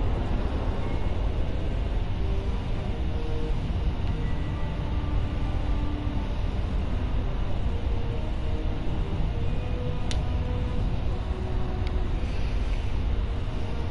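A spaceship engine roars with a deep, steady rumble.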